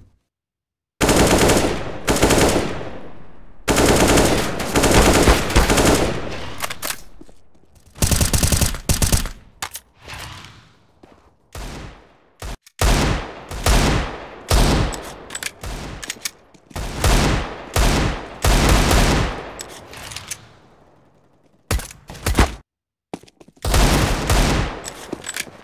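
Guns fire loud, rapid shots that ring out with a sharp echo.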